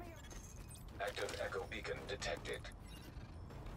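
Boots clamber onto metal.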